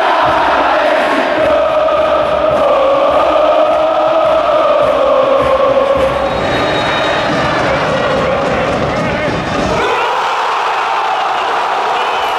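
A huge crowd sings and chants loudly in unison in an open stadium.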